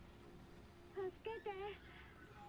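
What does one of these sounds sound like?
A young girl's voice calls out faintly through a phone.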